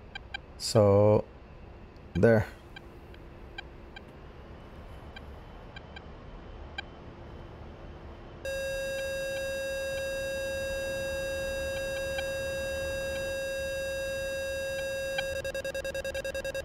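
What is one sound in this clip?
A jet engine hums steadily from inside a cockpit.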